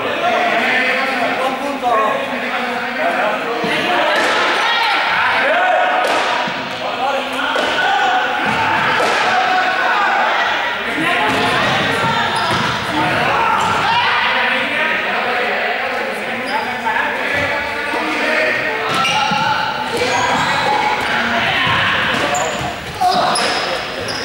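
Many young people shout and call out in a large echoing hall.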